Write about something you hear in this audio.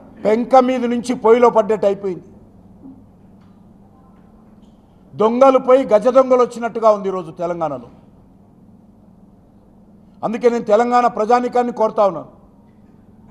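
A middle-aged man speaks forcefully into a microphone, in short bursts with pauses.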